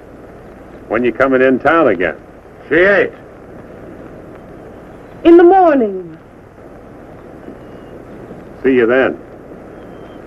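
A man speaks cheerfully and loudly.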